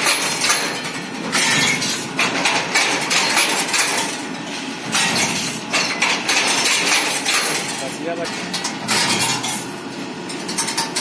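A wire-forming machine clatters and rattles steadily.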